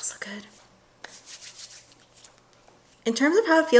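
Hands rub together.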